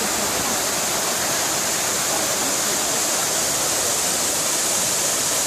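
Water splashes and rushes steadily from a fountain outdoors.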